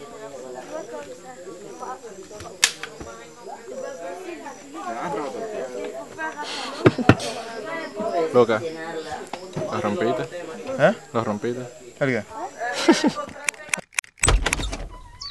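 A lively crowd of young people talks and shouts close by.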